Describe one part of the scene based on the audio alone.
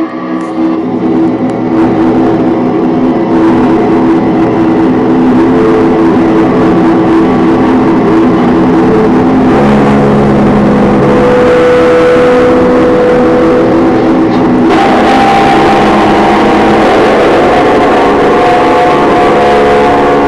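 Loud music plays through loudspeakers.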